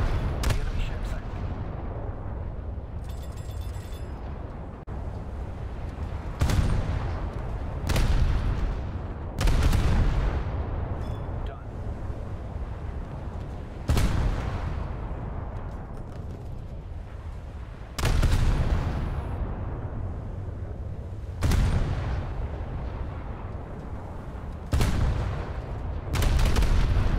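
Heavy naval guns fire in loud booms that rumble away.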